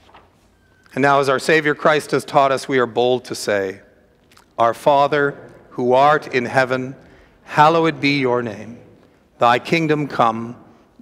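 An elderly man chants or reads aloud slowly into a microphone, in an echoing hall.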